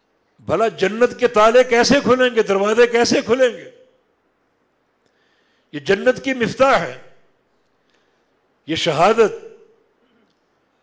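An elderly man chants in a slow, melodic voice through a microphone, with short pauses between phrases.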